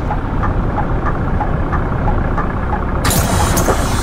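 A bus indicator ticks evenly.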